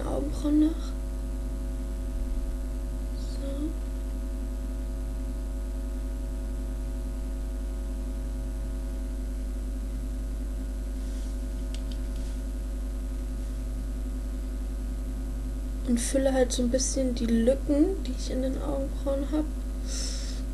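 A young woman talks calmly close to the microphone.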